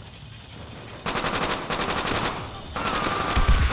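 A submachine gun fires rapid bursts close by.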